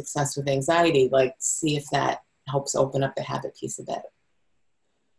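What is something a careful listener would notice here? A woman speaks with animation through an online call microphone.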